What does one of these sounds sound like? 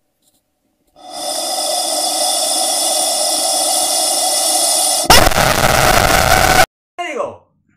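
A rubber chicken lets out a long, loud squawk.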